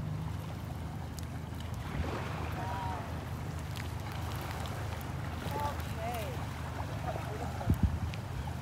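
Shallow water laps gently.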